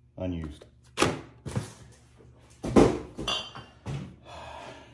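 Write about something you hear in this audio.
Objects knock and clatter against a plastic bin.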